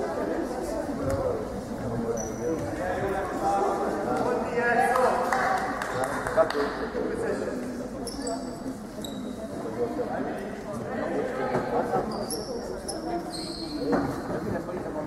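Young women call out to each other in an echoing hall.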